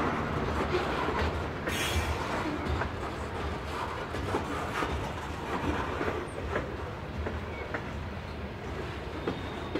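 Steel wheels clack and squeal over rail joints.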